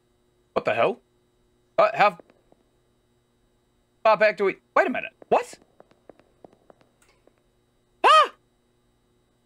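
A young man speaks close to a microphone in short, animated bursts.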